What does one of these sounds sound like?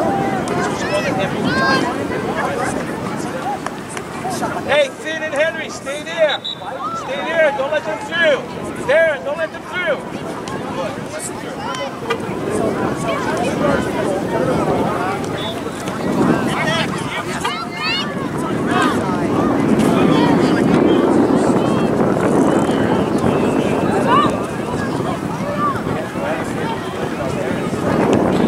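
A crowd of spectators chatters and calls out from the sideline.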